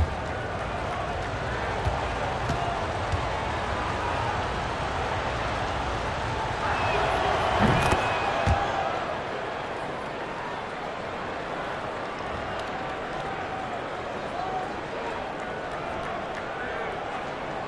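A crowd murmurs steadily in a large arena.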